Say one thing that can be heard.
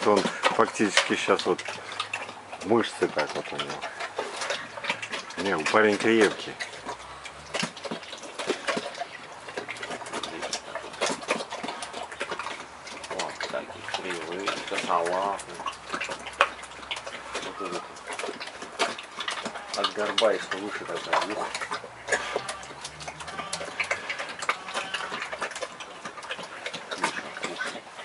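A bear chews and crunches watermelon with wet, smacking bites.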